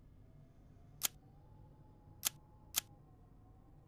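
Soft menu clicks sound a few times.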